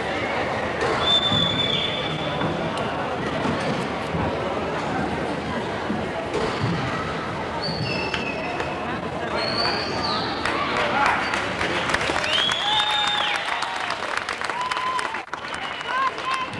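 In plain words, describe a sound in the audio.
Children's high voices call out and shout in the crowd.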